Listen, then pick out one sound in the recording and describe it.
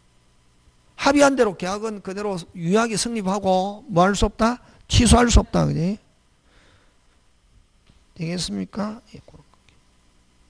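A middle-aged man speaks with animation into a handheld microphone, close by.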